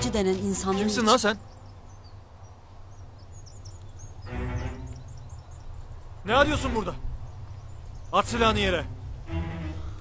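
A man shouts loudly in calls outdoors.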